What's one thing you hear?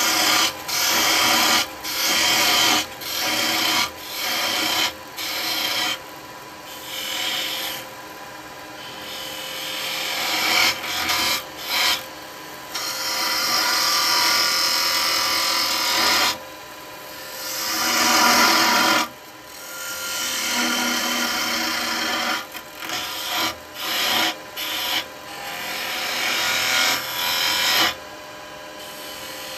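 A wood lathe hums steadily.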